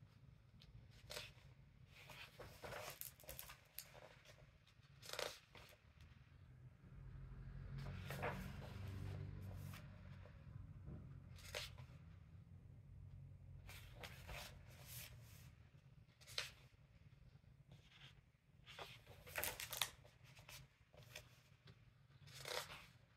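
Paper pages are turned and rustle.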